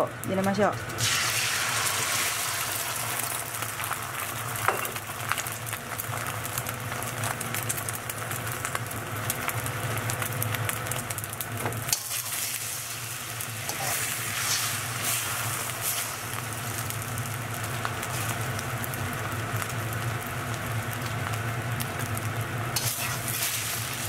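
Beaten egg sizzles in a hot pan.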